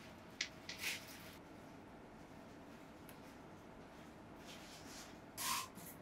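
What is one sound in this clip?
Paper rustles and taps as pressed leaves are placed on a sheet.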